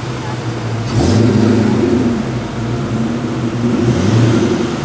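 A muscle car engine roars loudly as it passes close by.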